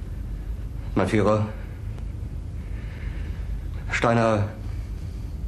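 A middle-aged man speaks haltingly, in short bursts.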